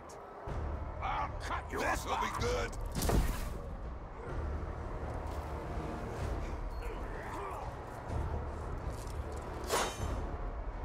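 Metal weapons clash and clang in a fight.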